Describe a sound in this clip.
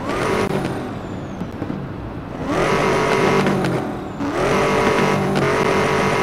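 A sports car engine revs loudly in repeated bursts.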